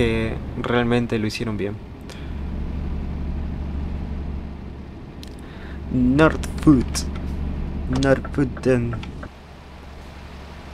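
A truck engine rumbles steadily at low revs.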